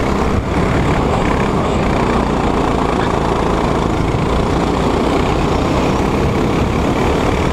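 A go-kart engine buzzes loudly up close.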